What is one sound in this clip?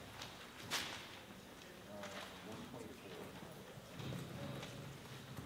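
A jazz big band plays in a large hall.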